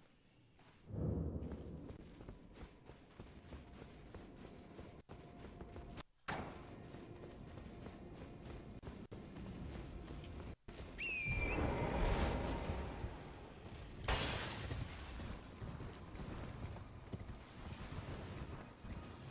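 Footsteps run quickly over stone and then through grass.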